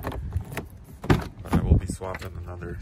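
A car door latch clicks and the door swings open.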